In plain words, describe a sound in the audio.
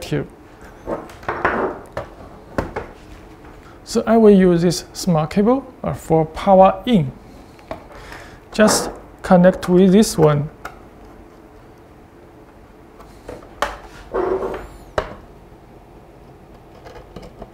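Small plastic parts click and tap as a device is handled.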